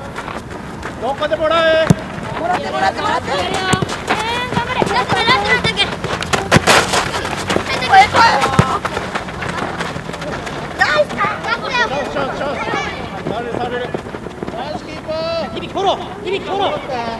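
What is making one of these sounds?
Young children shout and call out across an open field.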